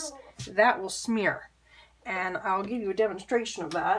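A brush is set down on a hard tabletop with a soft tap.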